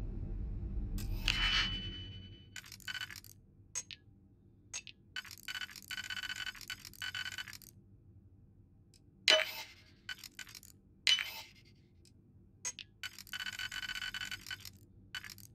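Electronic clicks and whirring tones sound in short bursts.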